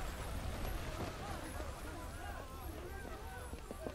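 Feet run hurriedly on stone.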